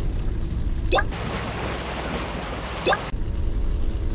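A boat's motor roars through splashing water.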